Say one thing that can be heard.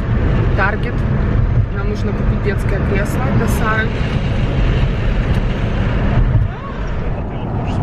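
A young woman talks cheerfully close to a microphone.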